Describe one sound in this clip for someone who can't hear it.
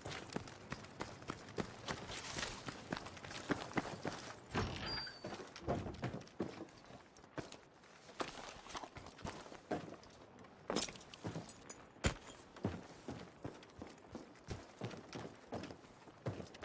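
Footsteps thud steadily on wooden floors and ground.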